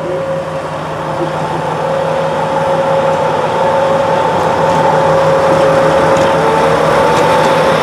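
Steel wheels squeal and hum on the rails.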